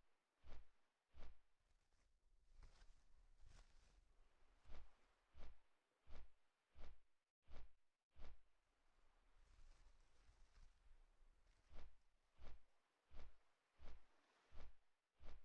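Large wings beat with regular heavy whooshes.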